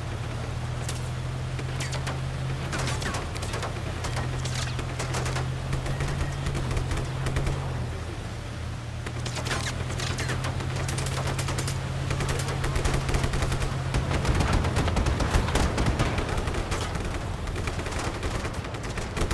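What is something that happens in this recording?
A large bus engine roars steadily at speed.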